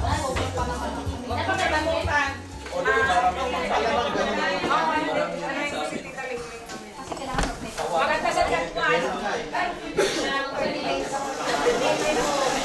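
Several women chat and laugh nearby.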